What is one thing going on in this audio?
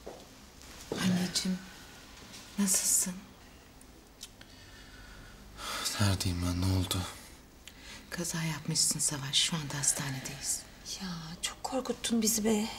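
A middle-aged woman speaks quietly and tensely, close by.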